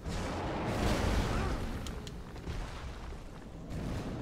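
Fire roars in a loud burst.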